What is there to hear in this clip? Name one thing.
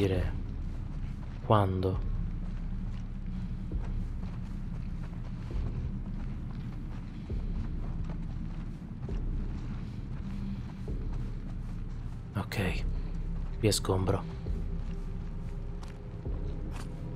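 Footsteps shuffle softly across a carpeted floor.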